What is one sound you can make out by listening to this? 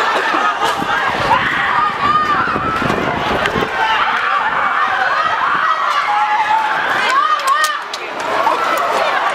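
A large crowd of men and women shouts and screams outdoors.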